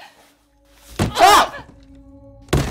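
A young woman screams loudly.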